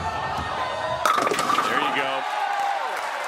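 Bowling pins crash and scatter loudly.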